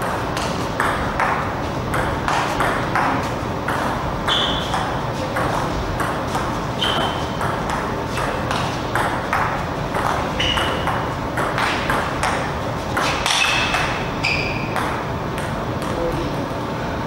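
A table tennis ball clicks quickly back and forth off paddles and the table.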